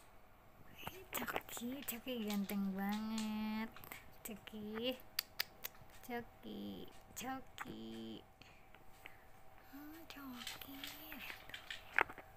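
A small dog whines and howls close by.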